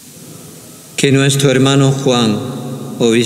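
An elderly man chants loudly through a microphone in an echoing hall.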